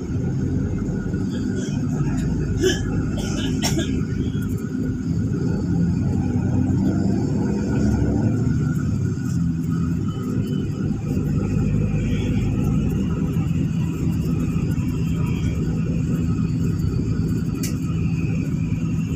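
A vehicle's engine hums steadily.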